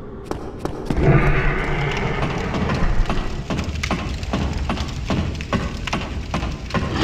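Footsteps clatter on a wooden ladder.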